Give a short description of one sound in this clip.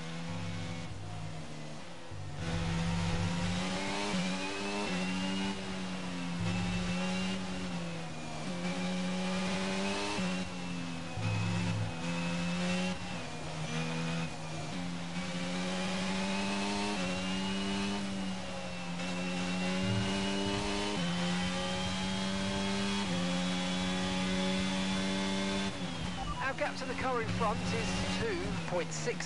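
A racing car engine whines at high pitch, rising through each gear and dropping sharply at each gear change.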